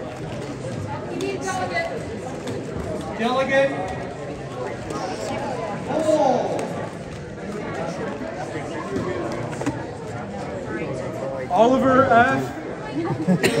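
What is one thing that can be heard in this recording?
Children and adults chatter nearby in a busy, noisy crowd.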